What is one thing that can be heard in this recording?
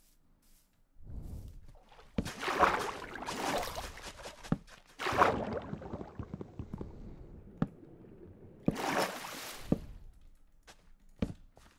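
Water splashes and gurgles in short bursts.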